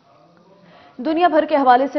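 A woman reads out the news calmly into a microphone.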